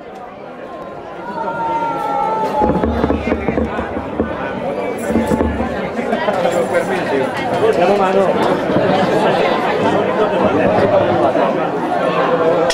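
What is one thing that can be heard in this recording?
A brass band plays a lively tune outdoors.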